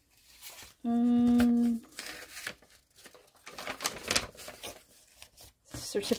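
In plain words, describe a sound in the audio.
Paper rustles and crinkles as it is unfolded.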